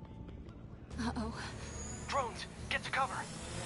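Drones whir and buzz overhead.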